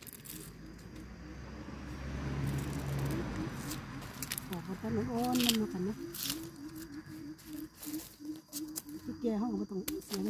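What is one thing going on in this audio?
Dry leaves rustle and crackle.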